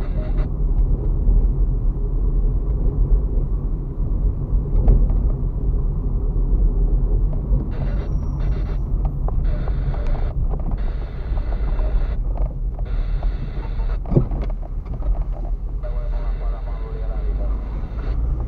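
A car engine hums at low speed from inside the car.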